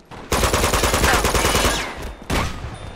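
A rifle fires a few shots.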